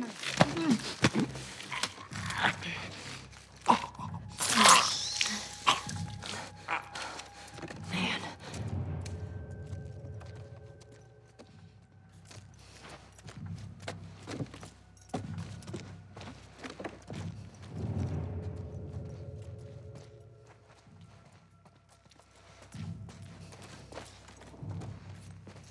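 A person crawls slowly across a floor, with soft rustling and shuffling.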